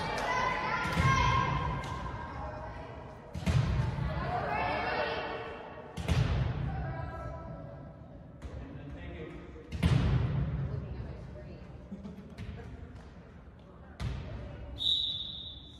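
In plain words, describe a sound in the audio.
A volleyball is struck and thuds, echoing through a large hall.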